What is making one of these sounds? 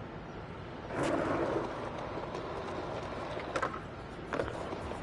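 A skateboard rolls along pavement.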